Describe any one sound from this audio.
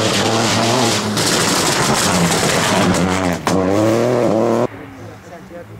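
A rally car engine roars at high revs as the car speeds past close by.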